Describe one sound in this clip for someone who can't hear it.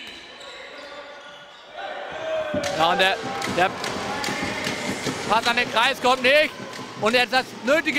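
A ball bounces on a hard floor in an echoing hall.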